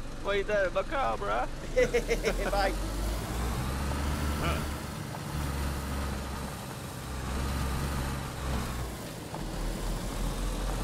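Tyres crunch over a gravel road.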